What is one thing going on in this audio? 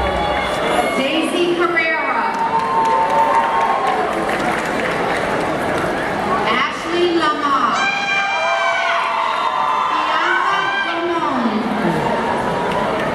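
A man speaks through a loudspeaker, reading out.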